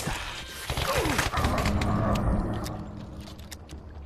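A pistol is reloaded with quick metallic clicks.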